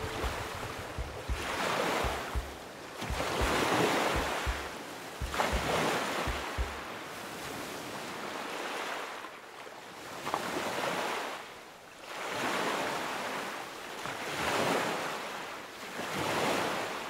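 Waves wash up on a shore in slow swells.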